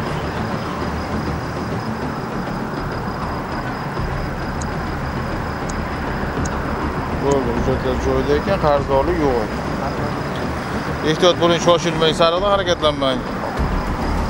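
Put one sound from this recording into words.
Traffic hums steadily on a road nearby.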